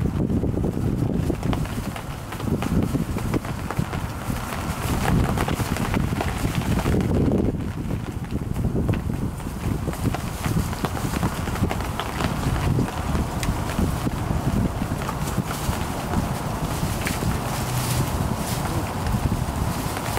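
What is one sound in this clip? Puppies rustle and scamper through dry wood shavings.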